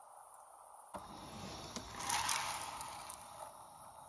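A plastic cooler lid thumps open.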